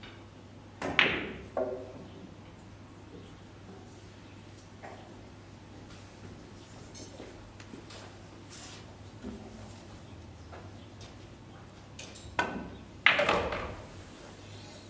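Pool balls clack together and roll across the table.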